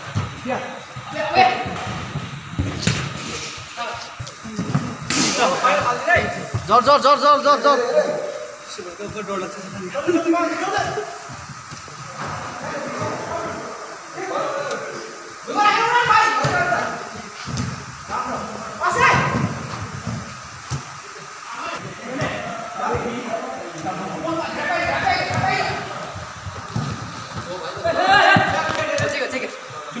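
Young men shout and call out to each other across an echoing indoor pitch.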